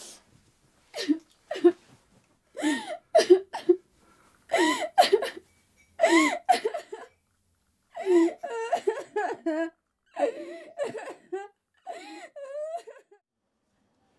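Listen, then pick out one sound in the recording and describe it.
A young woman speaks softly in short bursts close by.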